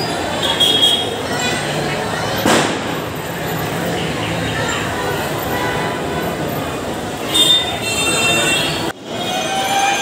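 A crowd of men and women murmur and talk nearby.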